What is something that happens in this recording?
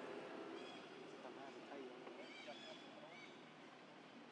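A baby monkey squeaks with high, short cries.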